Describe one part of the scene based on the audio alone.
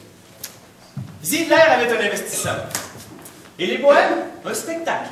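A man declaims loudly in a large echoing hall.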